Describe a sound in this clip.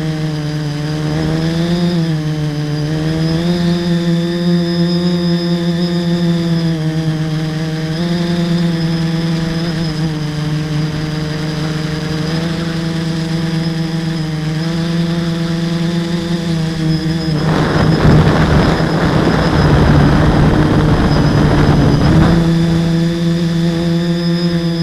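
A small drone's propellers whine loudly and steadily, shifting slightly in pitch.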